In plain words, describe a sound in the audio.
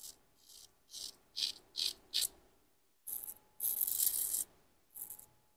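A razor scrapes over a lathered face.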